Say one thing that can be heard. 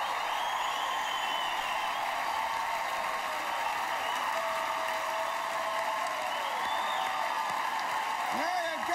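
A large crowd claps and cheers loudly in a big echoing hall.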